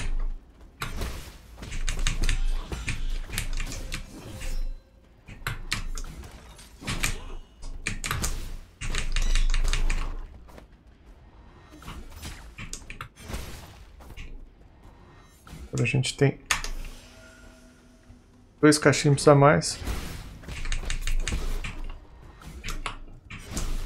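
Sword slashes and hits ring out in quick bursts.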